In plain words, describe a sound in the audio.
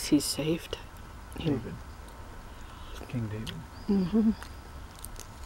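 A woman speaks softly and close by.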